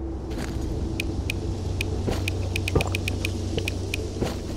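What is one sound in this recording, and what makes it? Short sharp interface clicks sound in quick succession.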